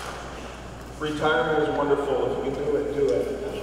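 An older man speaks cheerfully into a microphone over a loudspeaker.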